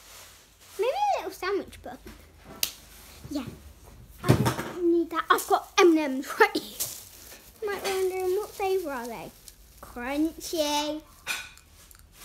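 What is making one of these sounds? A young girl talks and sings in a high voice close by.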